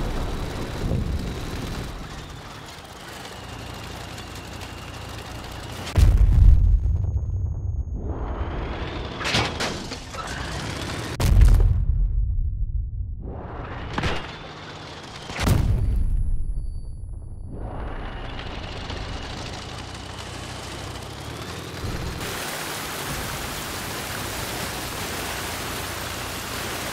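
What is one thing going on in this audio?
A tracked bulldozer's engine rumbles as it drives.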